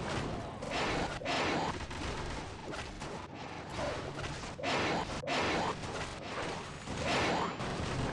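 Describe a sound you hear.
Cartoon blasts and hits pop and boom in a fast video game battle.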